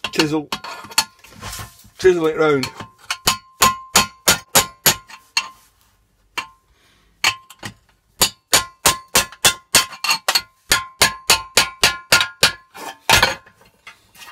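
A hammer strikes a chisel against metal in quick, steady blows.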